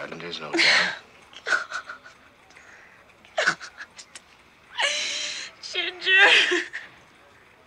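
A woman sobs and speaks in a shaky, tearful voice nearby.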